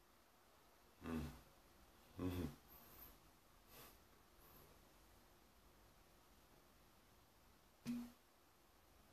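A man laughs softly close by.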